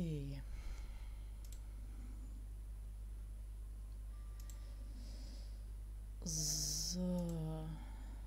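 Soft game clicks sound as puzzle pieces turn.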